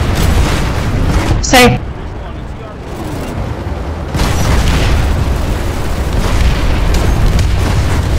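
Gunfire and explosions boom nearby.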